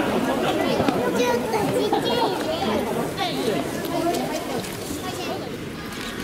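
A crowd of people chatters nearby in a large echoing hall.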